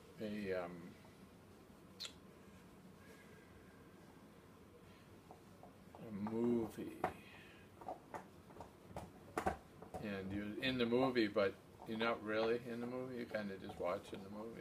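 An elderly man talks calmly, close by.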